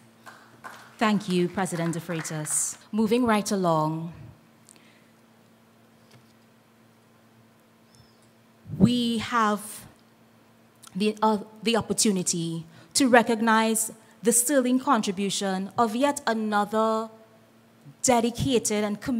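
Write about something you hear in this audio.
A woman speaks calmly into a microphone, heard over a loudspeaker.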